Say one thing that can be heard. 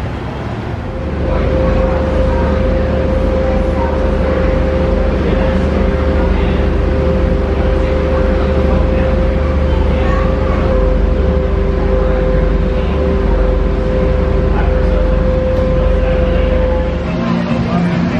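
A boat engine hums steadily with a low drone.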